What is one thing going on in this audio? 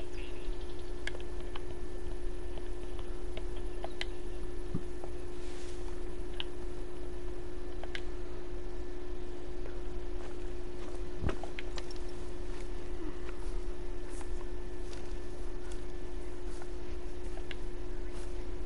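Wind blows steadily over open grassland.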